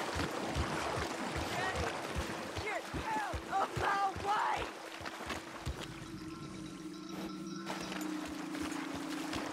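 A horse's hooves splash steadily through shallow water.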